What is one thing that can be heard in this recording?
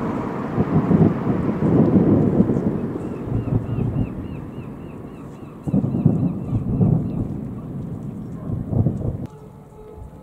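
Fireworks boom and crackle in the distance, echoing across open water.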